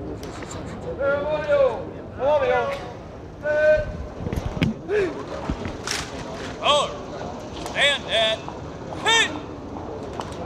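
A man shouts drill commands loudly outdoors.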